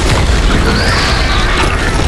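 An explosion booms with a burst of fire.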